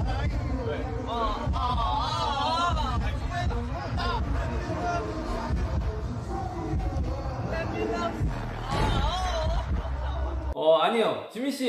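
Young men sing loudly together.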